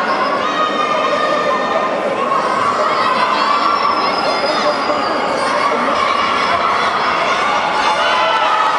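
A large crowd of young women and girls cheers and shouts in an echoing hall.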